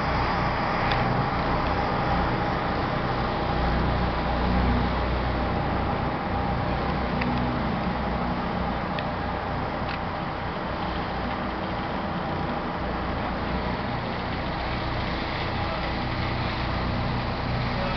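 Wind buffets against the microphone outdoors.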